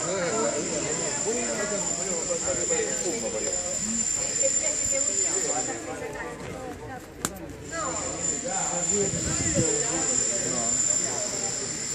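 Elderly men talk nearby in a loose, lively conversation outdoors.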